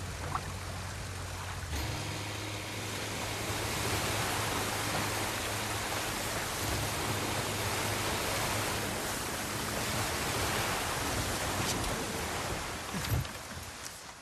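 Water splashes and churns against a boat's hull.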